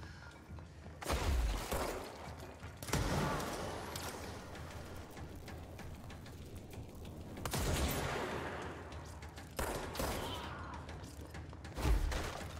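A gun fires loud shots in short bursts.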